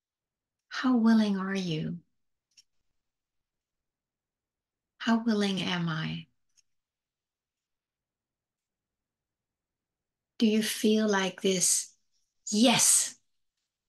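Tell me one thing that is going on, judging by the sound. A middle-aged woman speaks softly and slowly into a nearby microphone, with long pauses.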